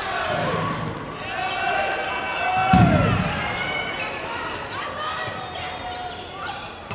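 Shoes squeak sharply on a hard indoor court.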